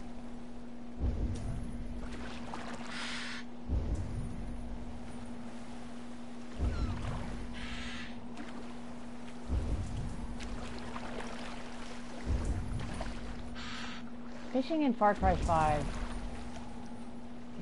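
Water washes and laps around a small wooden boat.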